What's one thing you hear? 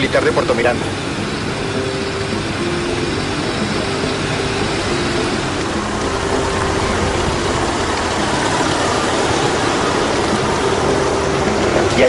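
A vehicle engine rumbles steadily at idle.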